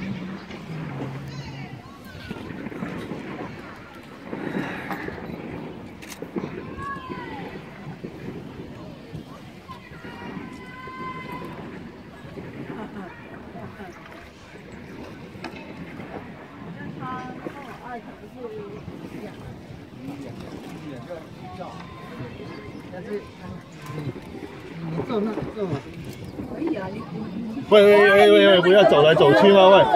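Water laps against a wooden boat's hull on a river.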